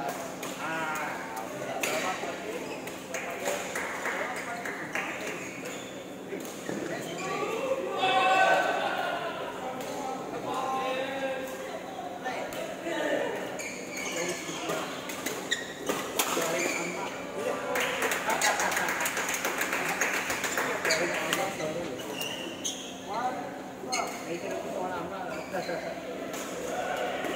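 Rackets strike shuttlecocks with sharp pops.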